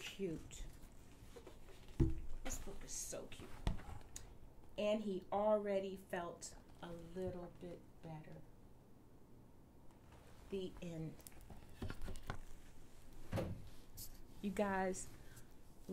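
A woman reads aloud with animated expression, close by.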